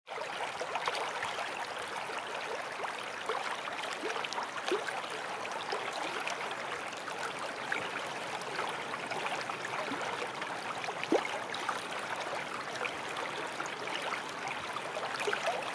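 Water rushes steadily over a waterfall.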